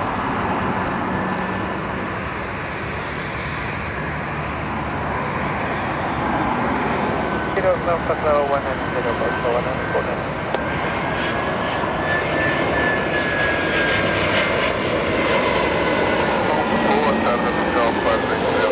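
A jet engine whines with a high, slowly shifting tone.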